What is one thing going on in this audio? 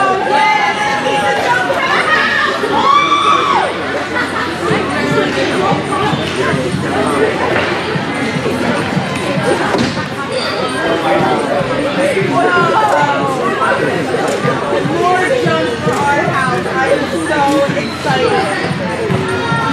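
Young girls shout and call out across an echoing indoor hall.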